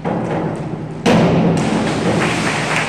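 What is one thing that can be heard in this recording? A diver splashes into the water of an echoing indoor pool.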